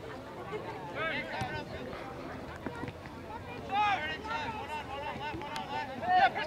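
Young players shout to each other across an open field outdoors.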